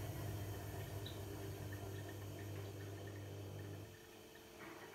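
A washing machine hums with a low drone, then falls quiet.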